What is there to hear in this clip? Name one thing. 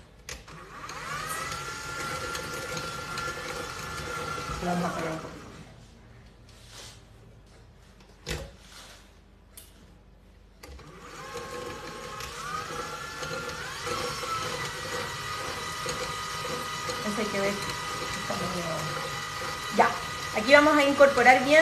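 A stand mixer's motor whirs steadily as the beater churns.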